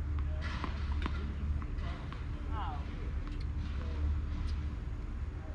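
A tennis ball bounces sharply on a hard court a few times.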